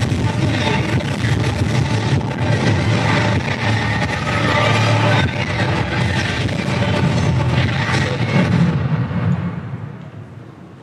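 Loud music plays through loudspeakers in a large hall.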